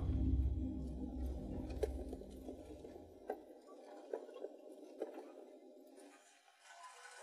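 A car engine rumbles while driving over a bumpy dirt road.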